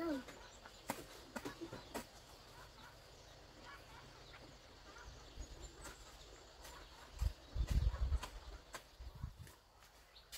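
A hoe thuds into soil some distance away.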